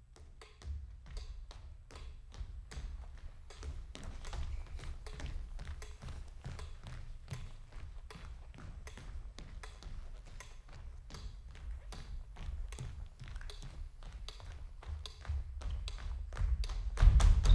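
Feet thump and patter on a wooden stage floor.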